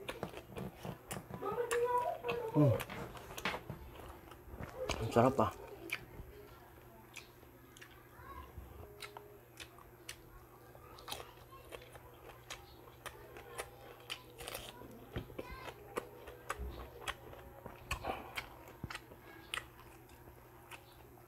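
A young man chews and smacks his lips loudly.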